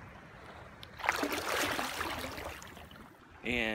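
Shallow water splashes around a hand.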